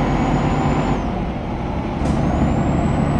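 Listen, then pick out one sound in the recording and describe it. A truck engine drops briefly during a gear change.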